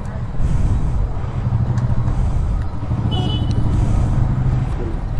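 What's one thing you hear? A motorcycle engine idles steadily close by.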